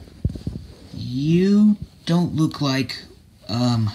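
A plush toy rubs and rustles softly against cloth.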